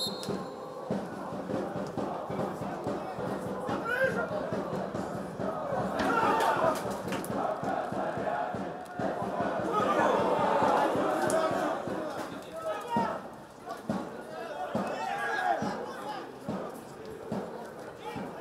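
A football is kicked with dull thuds on an open pitch.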